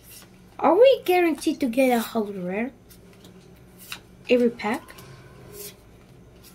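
Playing cards slide and tap softly against one another.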